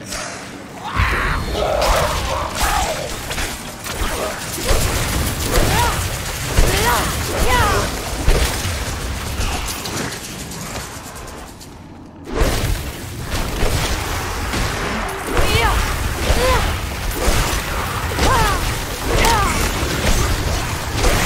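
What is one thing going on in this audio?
Magic spells crackle and boom during a fight.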